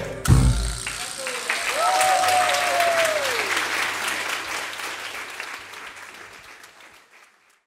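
Cymbals ring on and slowly fade away.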